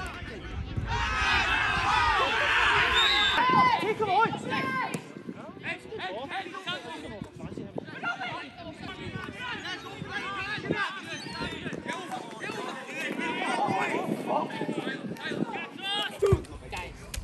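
Players shout and call to each other across an open pitch.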